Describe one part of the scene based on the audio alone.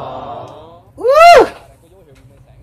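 A man squeals in a high voice.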